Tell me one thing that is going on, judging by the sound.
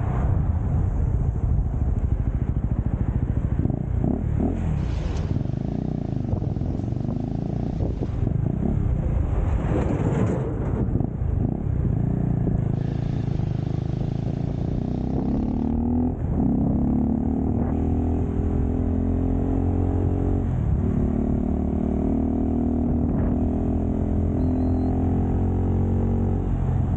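Wind rushes loudly past a microphone.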